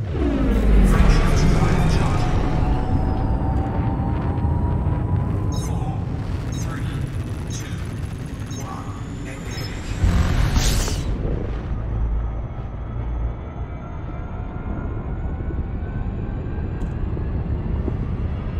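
A deep spacecraft engine rumbles steadily.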